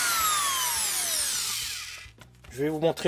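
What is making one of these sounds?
An electric router motor winds down.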